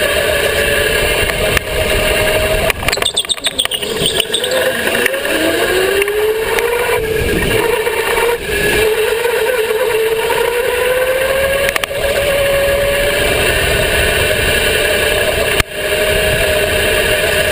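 A go-kart engine drones loudly up close, its pitch rising and falling with the speed.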